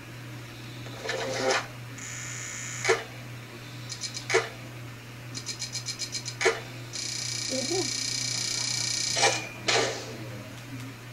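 Electronic game chimes and rapid ticks sound as a score counts up.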